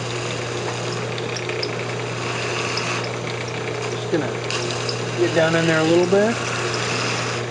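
A chisel scrapes against spinning wood.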